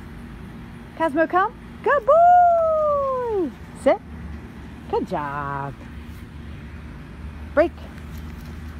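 A small dog yelps and whines in short, high bursts.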